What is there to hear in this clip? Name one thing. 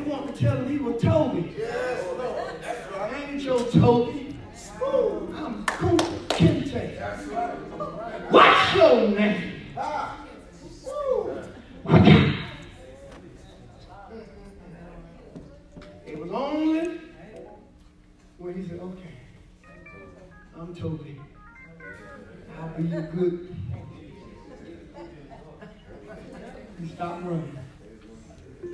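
A man preaches with passion into a microphone, his voice ringing through a large echoing hall.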